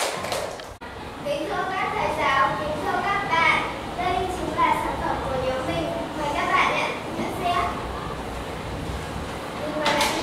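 A young girl speaks clearly and steadily to a room.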